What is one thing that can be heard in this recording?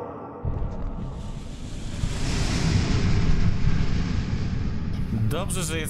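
A deep rumbling roar of churning sand and water builds and swells.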